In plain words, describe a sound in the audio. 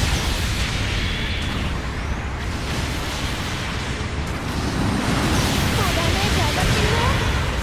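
Robot thrusters rumble and whoosh.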